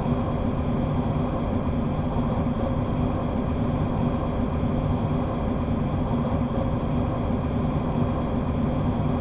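An electric train engine hums steadily at speed.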